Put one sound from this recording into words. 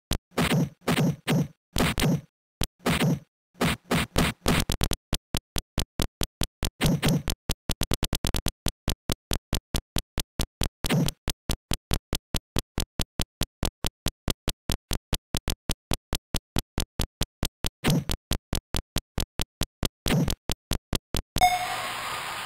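Game punches land with rapid electronic thuds.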